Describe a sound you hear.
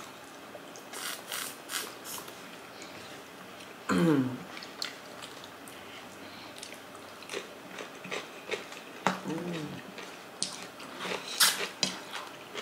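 Crisp food crunches as it is bitten.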